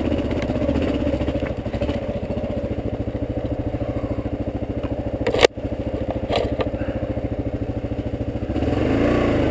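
A motorcycle engine putters steadily at low speed.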